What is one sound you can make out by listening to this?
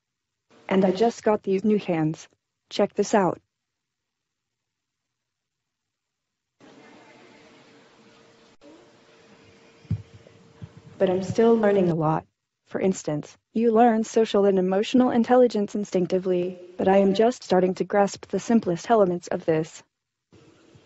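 A humanoid robot speaks calmly in a synthetic woman's voice through loudspeakers.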